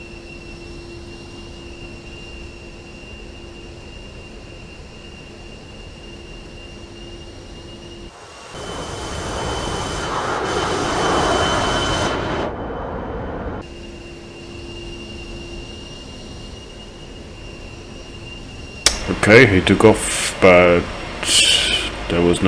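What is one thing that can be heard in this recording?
A jet engine whines steadily.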